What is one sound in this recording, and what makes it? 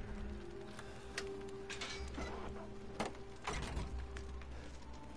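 A metal lock clicks and a chain rattles as a door is unlocked.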